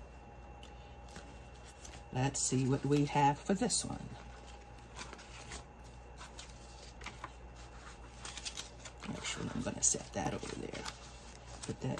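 Plastic pages flip and click in a binder.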